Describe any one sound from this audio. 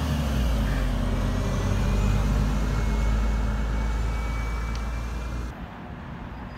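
A bus engine rumbles close by and fades as the bus pulls away.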